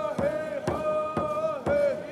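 A hand drum beats in a steady rhythm.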